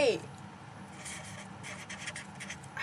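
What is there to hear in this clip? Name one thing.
A felt-tip pen squeaks faintly on paper.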